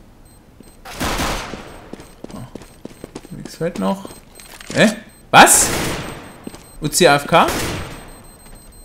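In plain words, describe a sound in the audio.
Gunshots ring out in loud, sharp bursts.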